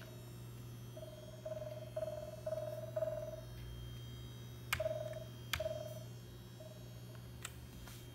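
A computer gives a series of short beeps.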